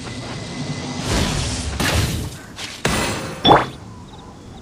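A magical bow shot bursts with a bright whoosh.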